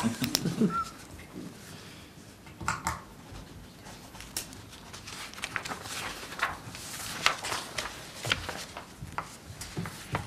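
Pens scratch and tap on paper.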